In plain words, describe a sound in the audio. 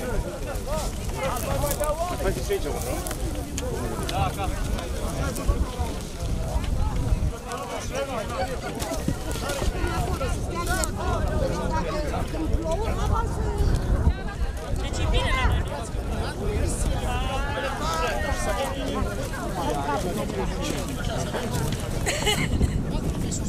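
Garden hoes scrape and thud into dry soil.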